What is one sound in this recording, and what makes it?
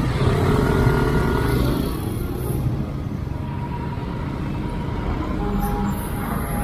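A motorcycle engine hums steadily up close.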